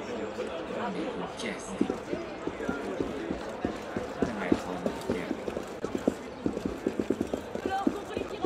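Quick footsteps run on cobblestones.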